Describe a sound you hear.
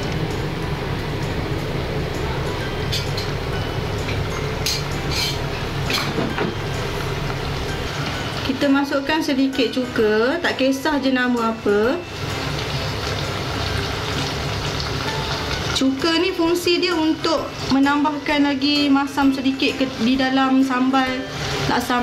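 A thick sauce simmers and bubbles softly in a pot.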